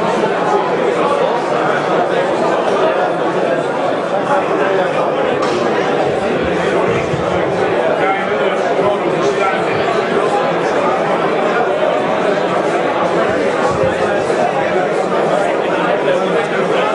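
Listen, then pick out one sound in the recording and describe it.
A large crowd chatters and cheers loudly in an echoing hall.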